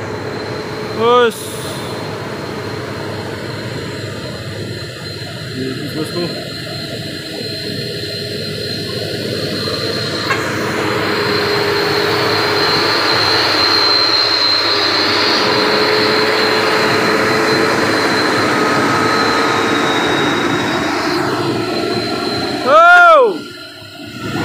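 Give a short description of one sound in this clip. A truck horn honks loudly.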